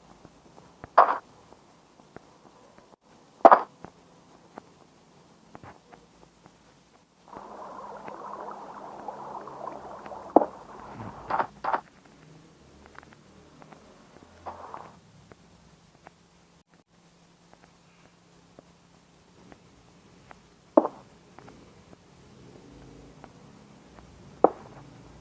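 Small objects are placed down with short, dull taps now and then.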